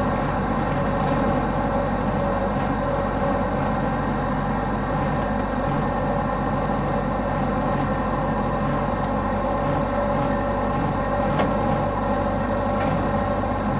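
Tractor parts rattle and clank over bumpy ground.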